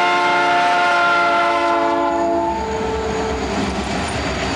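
A train horn blares loudly and then fades.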